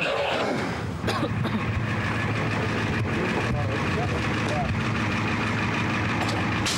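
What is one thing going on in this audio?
A truck engine idles nearby.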